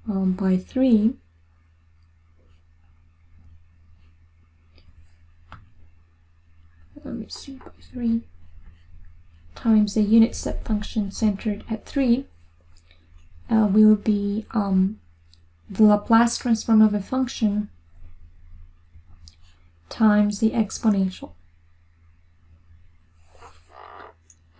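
A woman speaks calmly and clearly into a close microphone, pausing between phrases.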